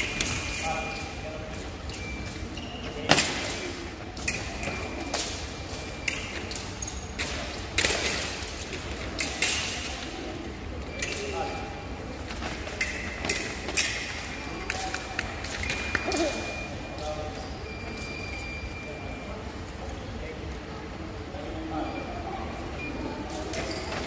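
Shoes squeak and thump on a hard floor in a large echoing hall.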